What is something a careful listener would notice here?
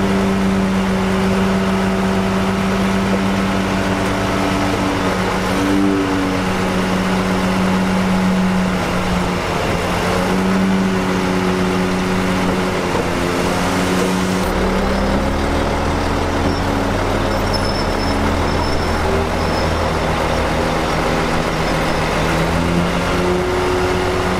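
A bulldozer engine rumbles steadily as it pushes earth.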